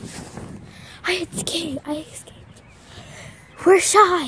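A young girl talks loudly and excitedly close to the microphone.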